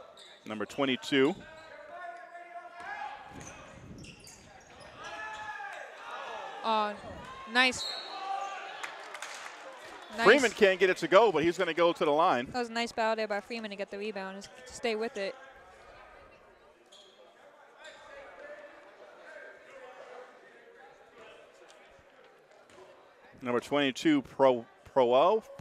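Spectators and players shout and call out in an echoing gym.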